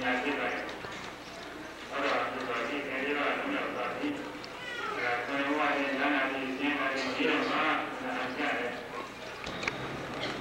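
An elderly man chants steadily through a microphone and loudspeaker.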